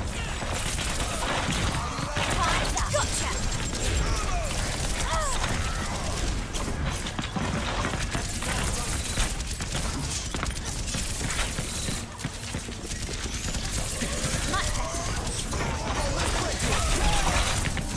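Twin pistols fire rapid bursts in a video game.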